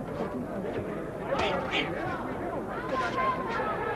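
Boxing gloves thud on a body.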